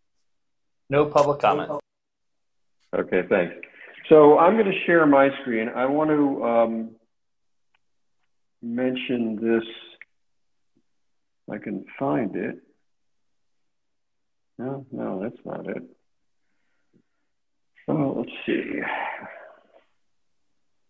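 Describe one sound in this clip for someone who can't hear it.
An older man speaks calmly over an online call, in short bursts with pauses.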